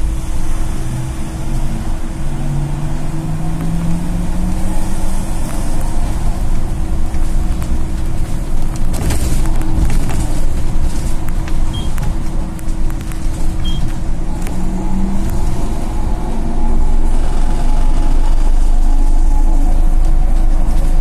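The bus body rattles and clatters over the road.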